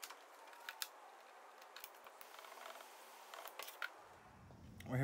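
Wires rustle and tap softly as hands twist them together.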